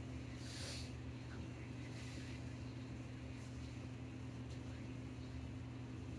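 Sneakers scuff softly on a rubber floor.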